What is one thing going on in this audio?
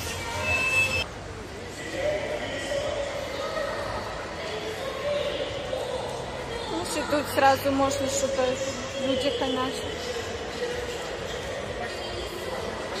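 Voices of many people murmur in the distance in a large, echoing hall.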